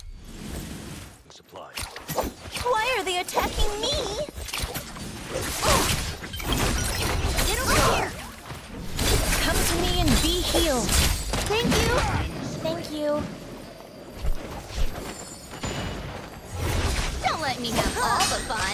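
Blades swish and clang in a fast fight.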